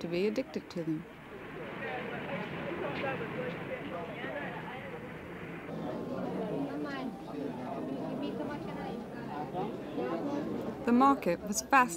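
A crowd murmurs and chatters nearby in the open air.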